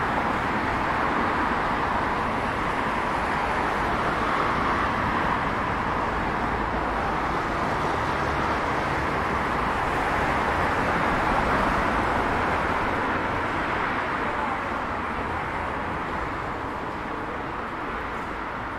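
City traffic rumbles and hisses steadily outdoors, fading a little toward the end.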